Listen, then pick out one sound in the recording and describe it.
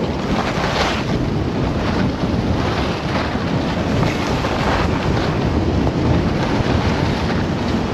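Wind rushes loudly past the microphone.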